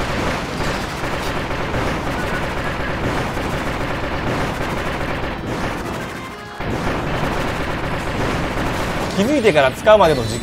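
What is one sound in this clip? Fiery blasts burst and crackle over and over.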